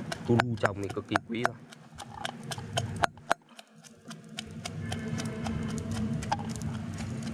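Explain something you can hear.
A pestle pounds in a metal mortar with repeated knocks.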